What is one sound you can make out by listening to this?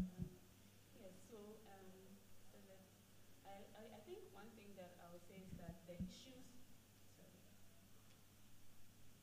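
A woman speaks quietly into a microphone.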